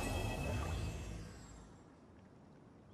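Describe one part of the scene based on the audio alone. A bright musical jingle rings out and slowly fades.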